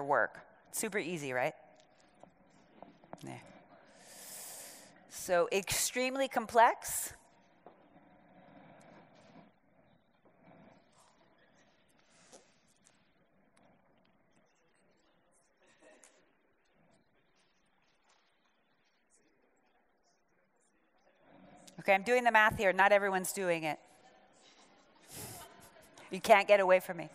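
A woman speaks through a microphone, pausing between phrases.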